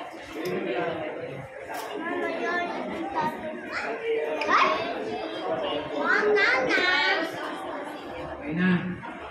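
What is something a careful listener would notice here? Men and women chatter lively nearby.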